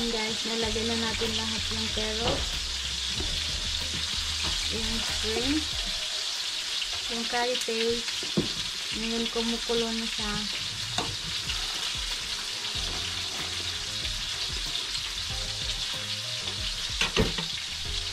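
A ladle stirs soup in a metal pot, clinking against its side.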